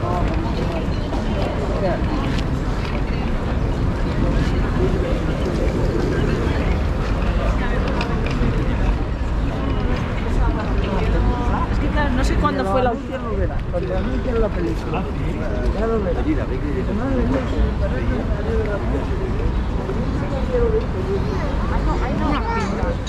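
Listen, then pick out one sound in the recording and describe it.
Many people chatter at outdoor tables nearby.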